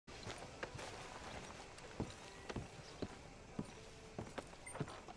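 Boots thud on wooden steps and boards at a steady walking pace.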